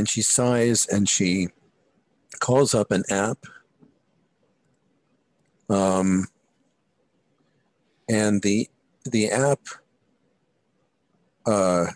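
A man talks calmly over an online call, in short bursts with pauses.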